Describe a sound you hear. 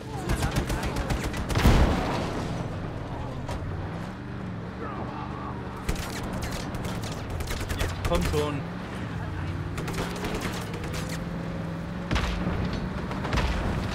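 A cannon fires with loud booms.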